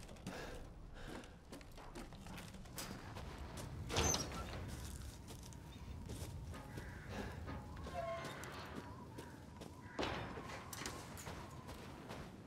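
Footsteps crunch over snow and gravel.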